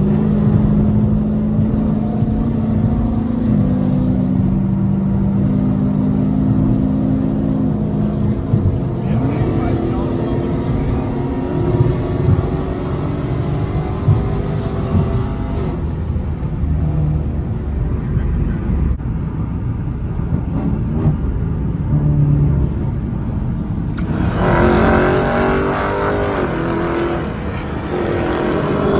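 A car engine revs up and shifts through gears while accelerating.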